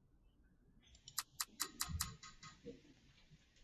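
A computer program plays a quick run of ticking clicks.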